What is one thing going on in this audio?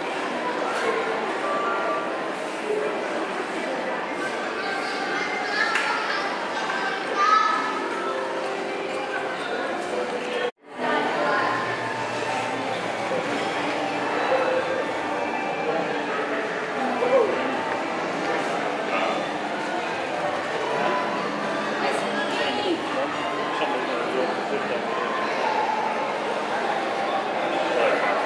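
A murmur of distant voices fills a large echoing hall.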